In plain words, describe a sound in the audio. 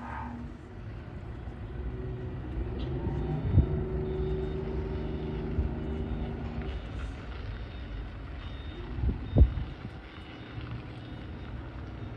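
A ship's engine hums steadily in the distance.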